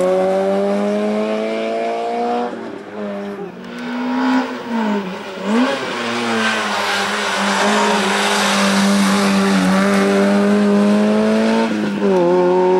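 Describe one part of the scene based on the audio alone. A rally car's engine revs hard and changes gear.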